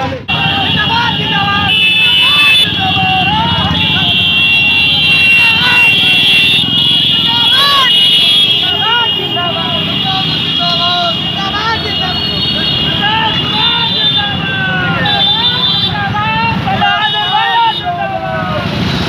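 A crowd of men shouts and chants loudly outdoors.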